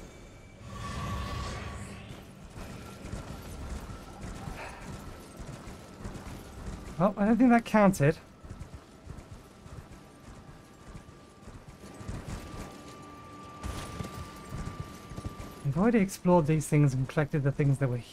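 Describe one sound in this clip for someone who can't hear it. Horse hooves thud steadily in a gallop across grass.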